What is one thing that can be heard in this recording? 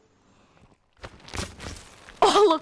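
A heavy hammer thuds against a body.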